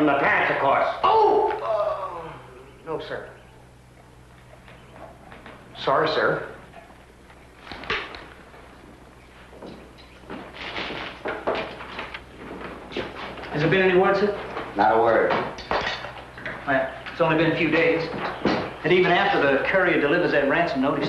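A man speaks with animation close by, in a room that echoes a little.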